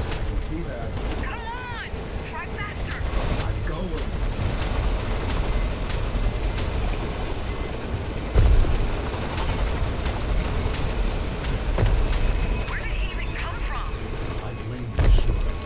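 A hover bike's engine roars steadily at high speed.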